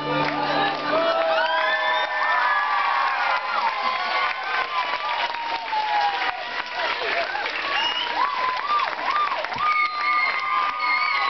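Rubber balloons squeak loudly as children rub and twist them.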